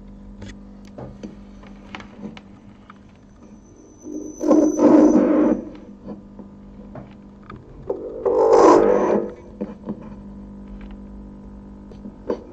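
A plug clicks in and out of a socket several times.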